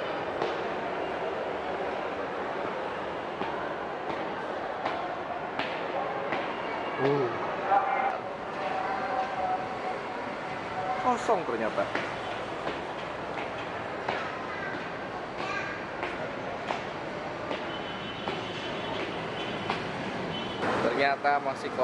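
Footsteps tap on hard stairs in an echoing space.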